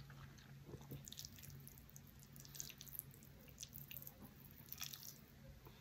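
Chopsticks scrape and click against a plate of noodles.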